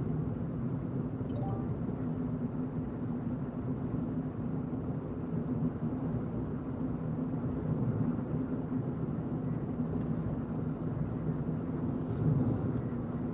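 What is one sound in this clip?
Tyres roll steadily on the road.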